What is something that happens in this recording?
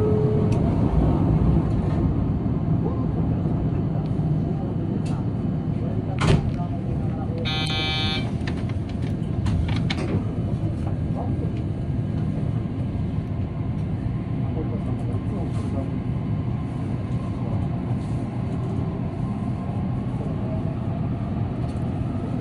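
An electric commuter train rumbles along the track, heard from inside the rear car.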